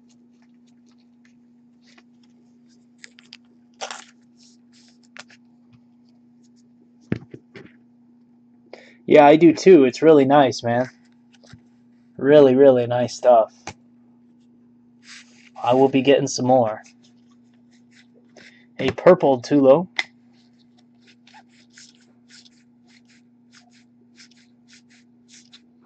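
A plastic card sleeve rustles and clicks in someone's hands.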